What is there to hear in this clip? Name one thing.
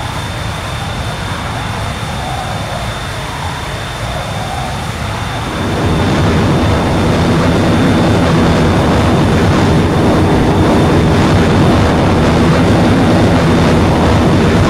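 A jet engine roars steadily and grows louder.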